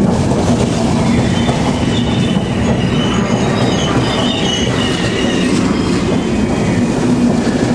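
Train wheels squeal on the rails.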